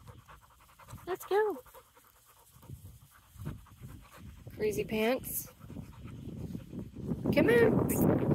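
A dog pants loudly nearby.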